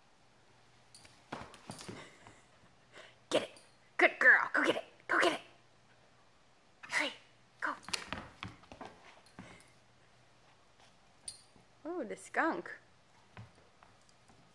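A dog shuffles and thumps about on a rug.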